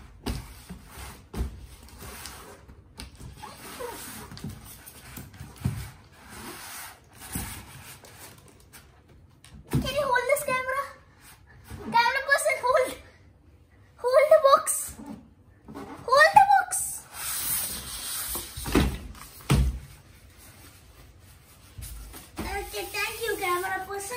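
Cardboard and foam packing rustle and scrape as a box is unpacked.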